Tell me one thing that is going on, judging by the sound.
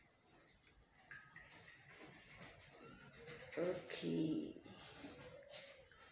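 Liquid trickles from a small bottle.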